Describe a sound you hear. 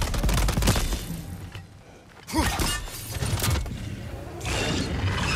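Metal armour clinks with each step.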